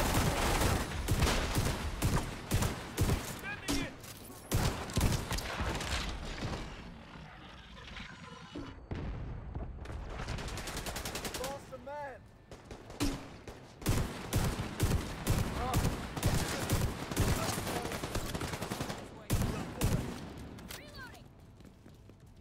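Rapid gunfire bursts crack loudly, close by.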